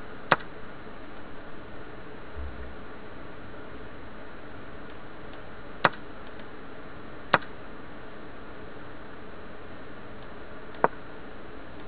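Sharp computer clicks sound now and then as chess moves are played.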